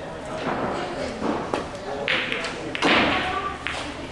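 A cue stick strikes a billiard ball.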